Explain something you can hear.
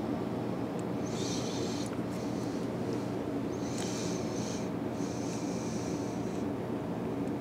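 Thread rasps softly as it is wound tightly onto a small hook.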